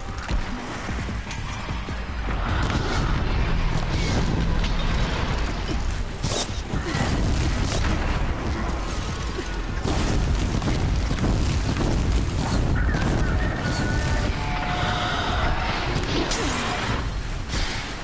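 A bowstring snaps as arrows are loosed in quick succession.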